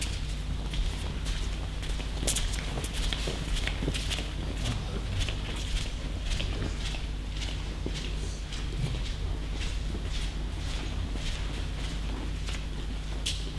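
Bare feet thud and pad on mats in a large echoing hall.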